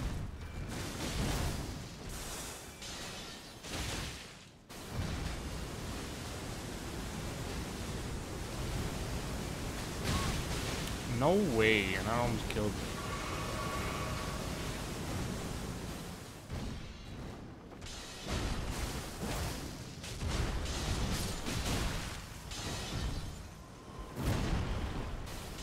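Blades clash and strike with heavy impacts.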